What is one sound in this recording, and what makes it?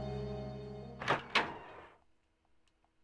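Heavy wooden doors clunk and swing open.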